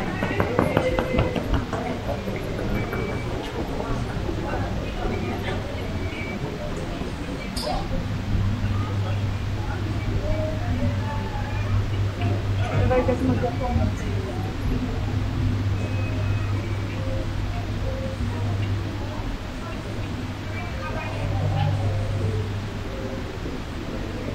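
Suitcase wheels roll on a hard floor.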